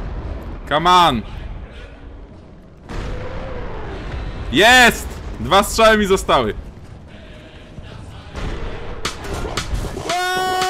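A man speaks loudly with animation into a close microphone.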